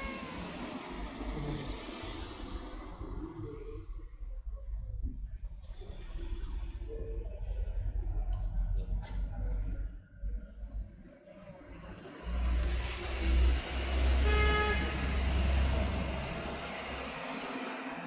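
A cat purrs loudly up close.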